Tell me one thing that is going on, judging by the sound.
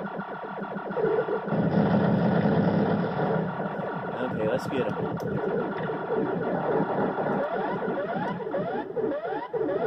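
Video game music plays through small speakers.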